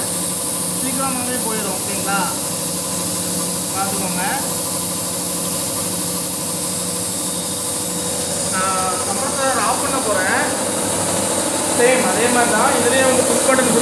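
Compressed air hisses steadily from a leaking valve.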